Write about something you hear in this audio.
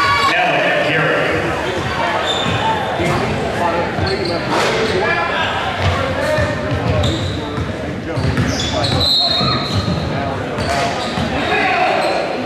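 A crowd cheers and murmurs in a large echoing gym.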